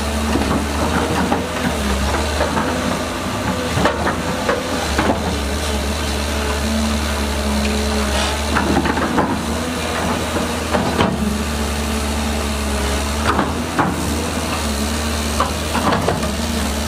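Rocks and gravel scrape and clatter in an excavator bucket.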